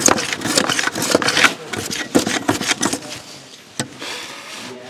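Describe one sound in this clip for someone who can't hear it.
A chisel knocks and scrapes against wood.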